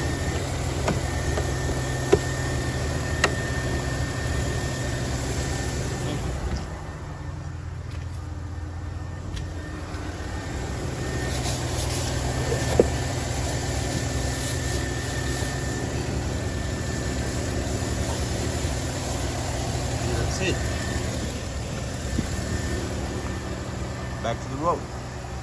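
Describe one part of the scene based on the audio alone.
An engine idles with a steady low hum.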